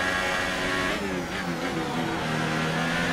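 A racing car engine drops in pitch as the driver brakes and shifts down.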